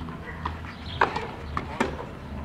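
A tennis racket strikes a ball.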